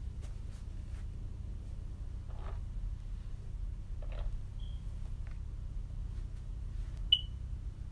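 A brush swishes through hair.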